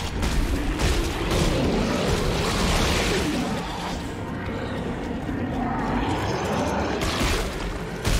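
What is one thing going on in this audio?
A creature snarls and screeches.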